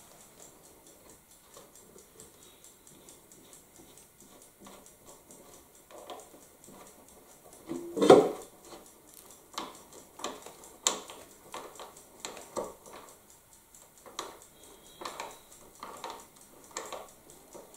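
A tool clicks and scrapes against plastic strips in a wooden box.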